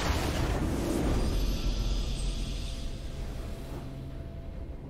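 A loud game victory fanfare sounds and fades.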